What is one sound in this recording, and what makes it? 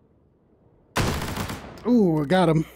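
A heavy machine gun fires a loud burst.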